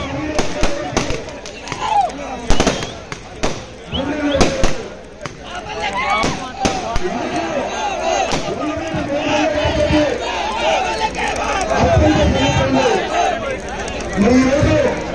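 A man speaks loudly and forcefully into a microphone over a loudspeaker.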